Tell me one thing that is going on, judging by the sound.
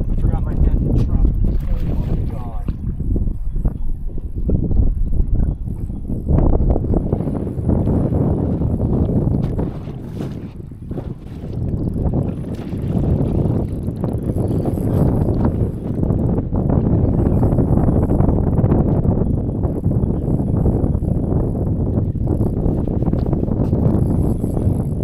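Water laps against a boat's hull.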